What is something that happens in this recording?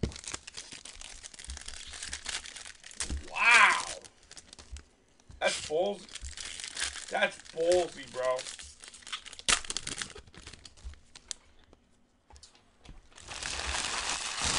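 Plastic wrappers crinkle and rustle as they are handled.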